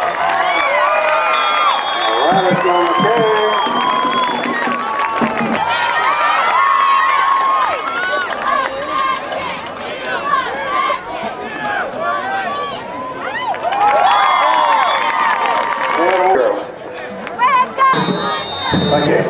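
A crowd of young men cheers and shouts loudly outdoors.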